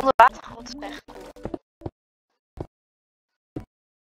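A block cracks and breaks apart.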